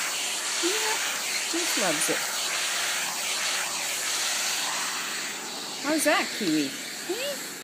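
A vacuum cleaner hums steadily close by.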